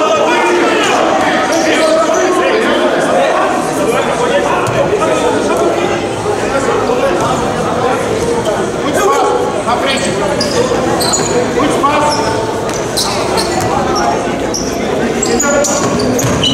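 Players shout and call out across a large echoing hall.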